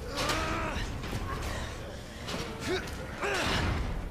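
A heavy metal gate rattles and clanks.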